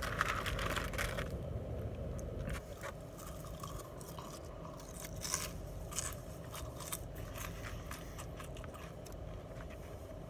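Paper food cartons crinkle and rustle close by.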